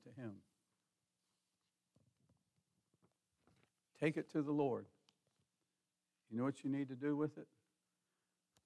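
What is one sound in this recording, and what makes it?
An elderly man speaks slowly and calmly into a microphone, in a large room with some echo.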